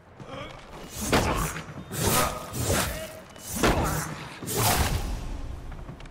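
Blades slash and strike repeatedly in a close fight.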